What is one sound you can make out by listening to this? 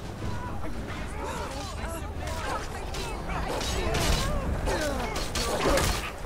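Weapons clash and bodies thud in a fight.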